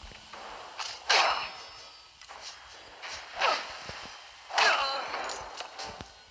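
A blade whooshes through the air in quick swings.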